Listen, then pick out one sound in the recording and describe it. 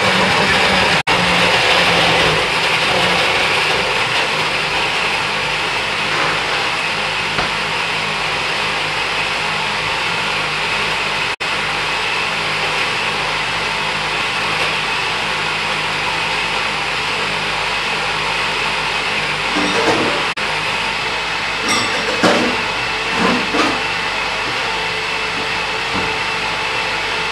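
A blender whirs steadily, churning a thick liquid.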